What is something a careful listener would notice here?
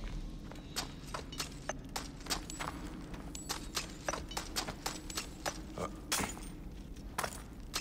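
Footsteps crunch and clink over heaps of loose metal objects.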